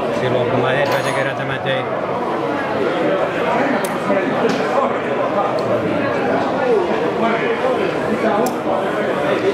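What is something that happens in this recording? A folding knife blade clicks open and shut.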